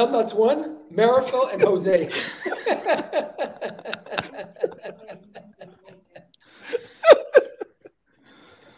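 Several men laugh heartily over an online call.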